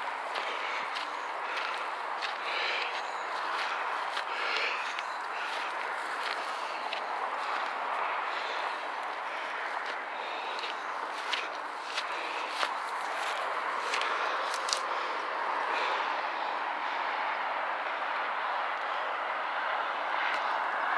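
Dry grass rustles and swishes against legs.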